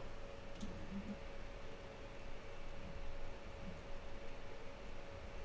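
A small machine hums steadily nearby.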